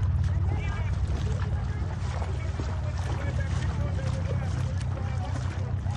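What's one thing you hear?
Shallow water splashes under a young woman's wading feet.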